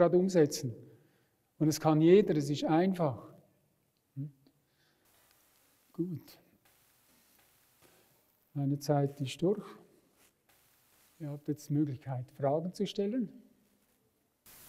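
An elderly man speaks calmly into a microphone, heard through loudspeakers in a large hall.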